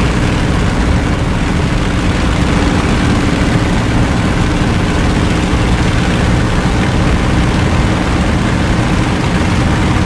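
A propeller aircraft engine drones steadily and loudly.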